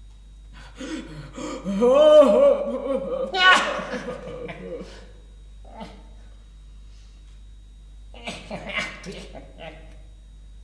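A young man sings close to a microphone, in phrases with pauses between them.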